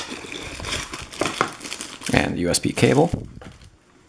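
Plastic wrapping crinkles in hands.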